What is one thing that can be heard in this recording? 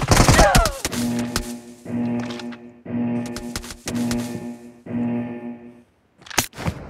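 A game countdown beeps once a second.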